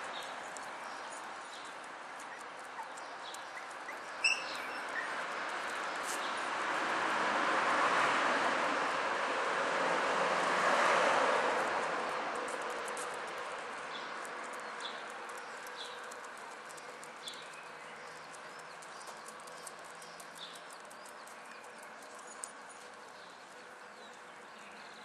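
Small paws patter and scrabble on a rug.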